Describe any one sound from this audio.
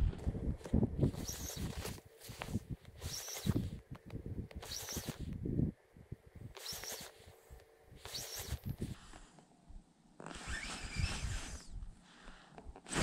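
A fishing reel whirs and clicks as line is wound in.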